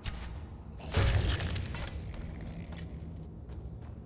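Flames crackle on a burning body.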